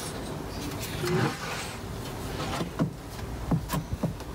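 A metal tray clatters against a wooden shelf.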